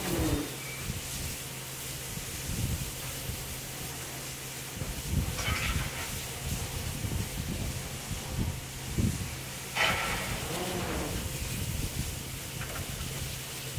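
A steam locomotive hisses as steam escapes near its wheels.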